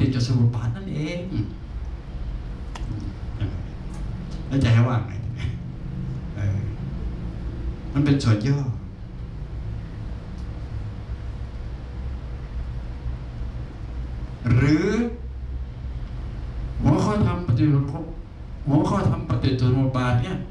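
An elderly man speaks calmly through a microphone, in bursts with pauses.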